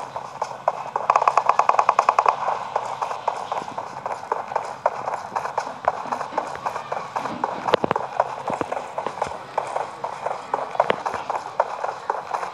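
Footsteps crunch quickly on sand and gravel.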